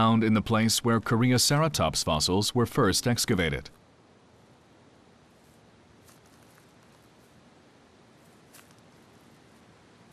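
Footsteps crunch softly on dry grass and rock.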